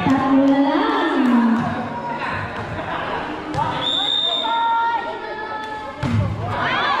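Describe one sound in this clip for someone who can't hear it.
Children shout and call out to each other across an open court.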